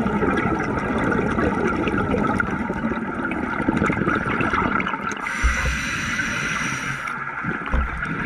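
Reef crackles with faint clicks heard underwater.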